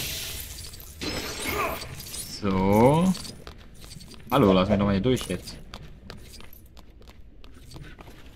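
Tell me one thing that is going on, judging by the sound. Small coins tinkle and clink as they are picked up in a video game.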